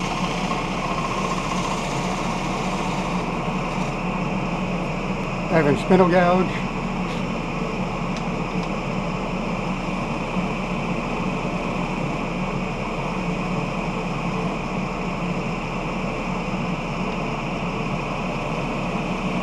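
A gouge cuts into wood spinning on a wood lathe.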